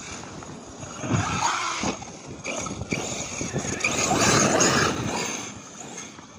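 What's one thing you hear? A small electric motor whines as a toy car drives over grass.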